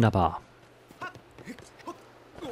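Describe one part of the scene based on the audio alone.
Footsteps patter quickly on wooden boards.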